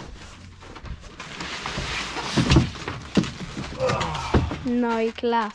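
Cardboard rustles and scrapes as a box is unpacked.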